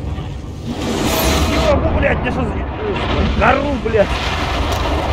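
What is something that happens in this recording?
A monstrous creature roars loudly.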